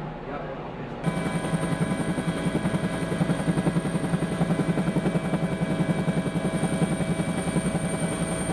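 A helicopter's rotor and engine roar loudly with a fast throbbing beat.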